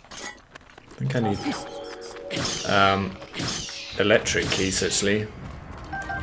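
A sword swings and strikes with sharp clashing hits.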